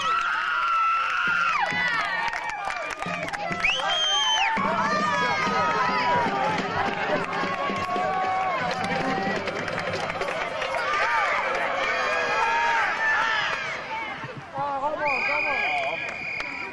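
A crowd of young people nearby chatters and cheers loudly outdoors.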